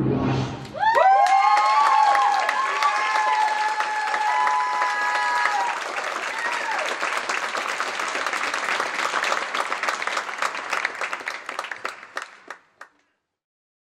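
An audience claps loudly in a large hall.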